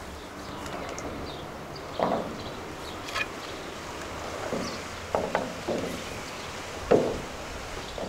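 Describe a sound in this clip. Wooden sticks knock against metal boxes.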